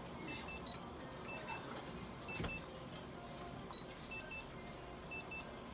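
An electronic device beeps in quick pairs of short, high tones.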